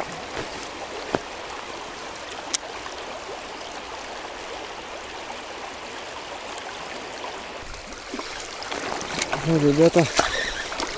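A river rushes and babbles steadily over stones.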